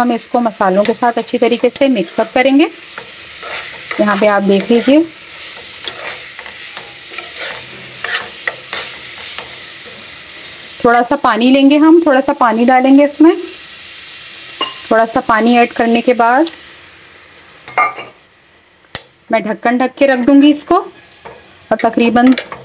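A metal spoon scrapes and clatters against a pan.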